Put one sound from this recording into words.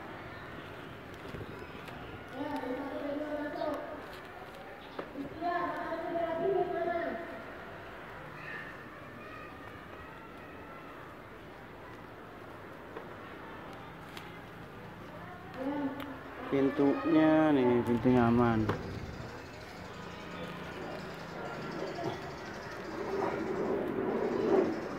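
A plastic lining crinkles under hands.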